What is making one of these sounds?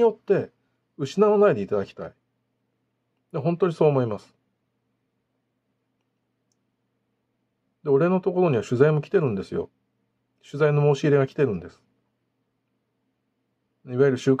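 A middle-aged man speaks calmly and close up, in short phrases with pauses.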